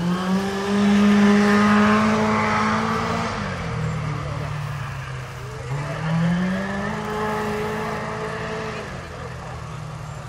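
A rally car engine roars loudly, revving up and down through gear changes.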